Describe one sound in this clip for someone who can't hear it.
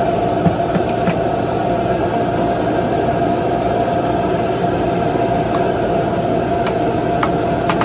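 Plastic containers knock and rattle as a woman handles them.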